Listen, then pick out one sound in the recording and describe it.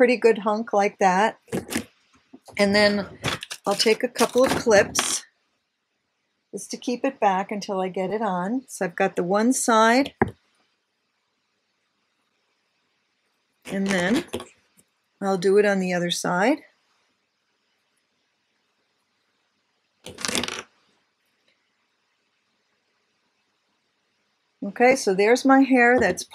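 An older woman talks calmly and close to a microphone, pausing now and then.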